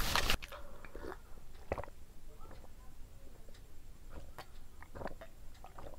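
A young woman sips and gulps a drink.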